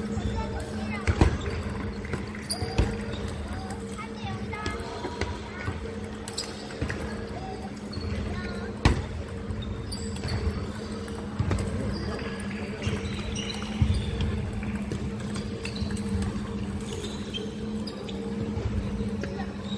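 Table tennis balls click and bounce on tables and paddles in a large echoing hall.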